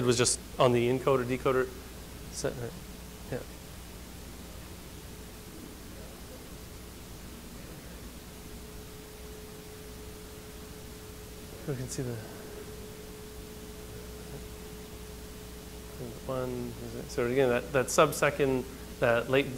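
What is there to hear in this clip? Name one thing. A man speaks nearby with pauses between remarks.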